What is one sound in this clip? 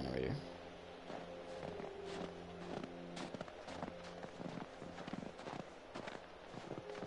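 Footsteps crunch slowly through snow.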